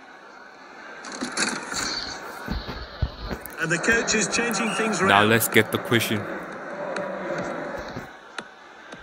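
A large stadium crowd roars and cheers.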